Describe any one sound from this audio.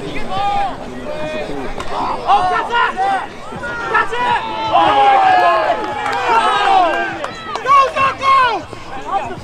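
Young players and onlookers shout across an open field outdoors.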